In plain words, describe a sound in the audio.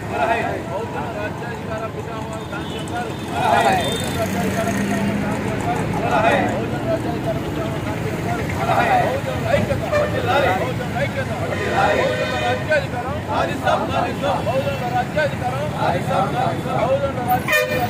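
Traffic rumbles along a street nearby.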